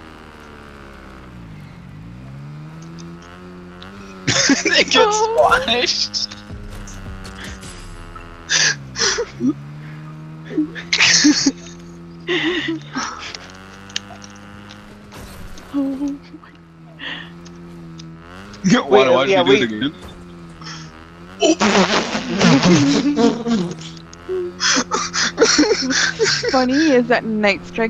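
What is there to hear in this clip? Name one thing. A motorbike engine hums steadily and revs up and down.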